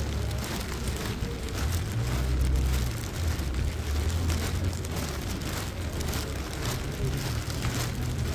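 Footsteps splash on a wet pavement at a steady pace.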